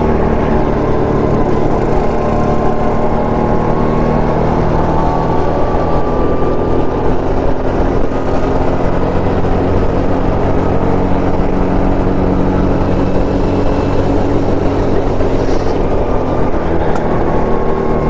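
A go-kart engine buzzes loudly and steadily up close.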